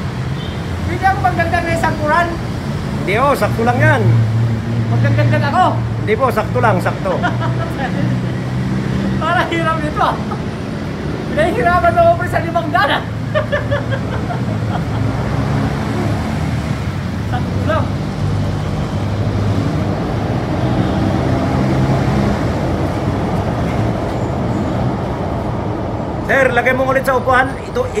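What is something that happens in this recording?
A middle-aged man reads aloud close by, his voice slightly muffled.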